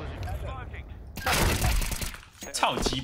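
Rifle gunfire bursts in a video game.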